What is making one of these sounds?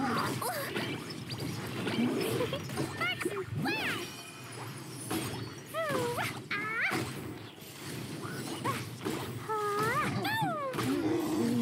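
Flames whoosh and crackle.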